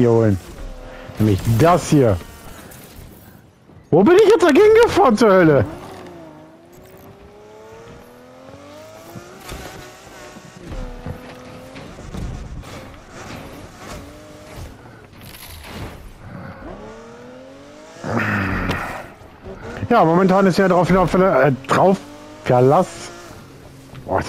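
A racing car engine revs and roars as the car speeds up.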